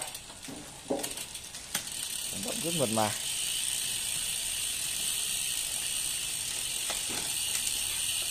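A bicycle chain whirs steadily as the pedals turn and the rear wheel spins.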